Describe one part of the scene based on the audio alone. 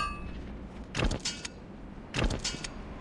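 Heavy wooden knocks sound.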